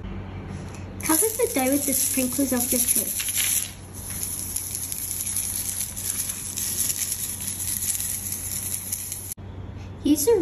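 Sprinkles rattle and patter out of a shaker.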